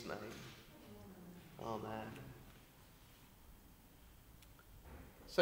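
A man reads aloud calmly into a microphone in a large echoing hall.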